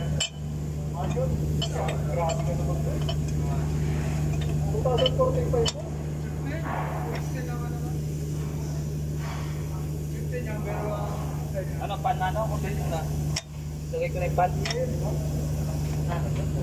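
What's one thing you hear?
A metal pulley clicks and rattles as a hand turns it.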